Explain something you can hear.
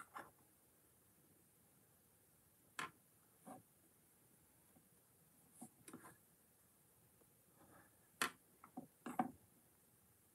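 Small plastic bricks click and rattle in someone's hands.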